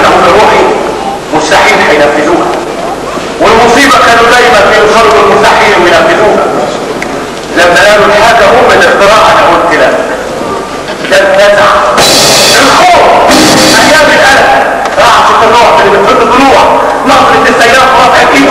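A man sings in a strong operatic voice in a large echoing hall.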